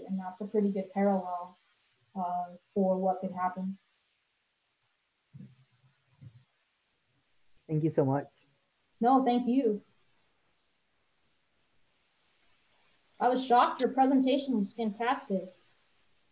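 A woman talks with animation over an online call.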